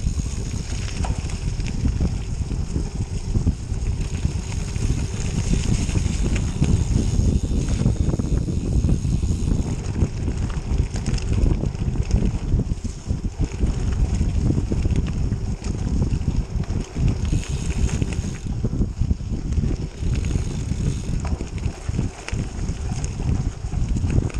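Bicycle tyres crunch and rattle over a leafy dirt trail.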